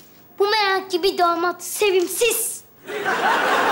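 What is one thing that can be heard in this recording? A young boy speaks in a lilting, sing-song voice.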